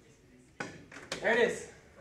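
A pool cue strikes a ball with a click.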